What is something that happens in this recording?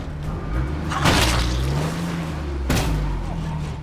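A vehicle crashes with a loud metallic bang.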